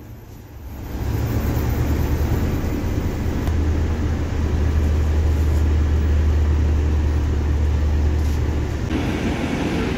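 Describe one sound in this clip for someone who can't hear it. A bus engine rumbles low and steady from inside the cabin.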